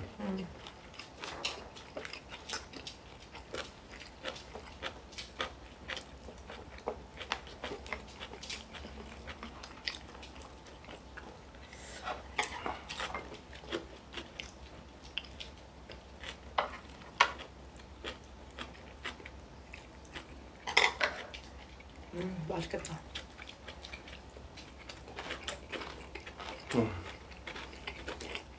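A man and a woman chew and slurp food close by.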